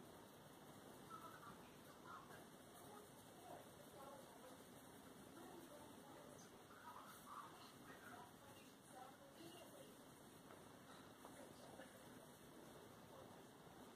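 A colored pencil scratches softly on paper.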